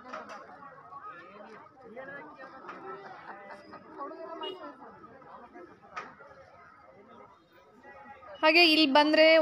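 A crowd of men and women murmurs and talks nearby.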